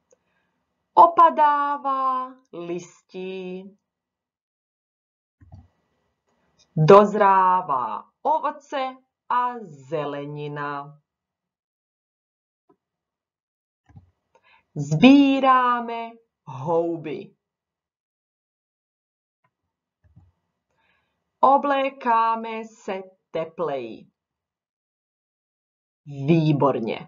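A young woman speaks calmly and clearly into a microphone, in short phrases with pauses.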